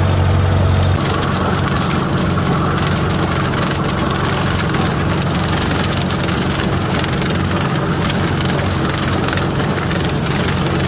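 A rotary mower chops through dry stalks behind a tractor.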